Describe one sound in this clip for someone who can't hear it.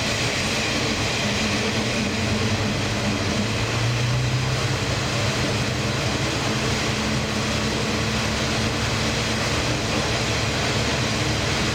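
Train wheels hum and whine on the rails.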